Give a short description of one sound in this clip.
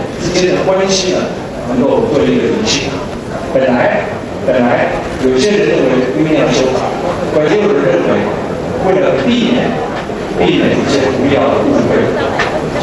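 A crowd of people shouts and clamours nearby.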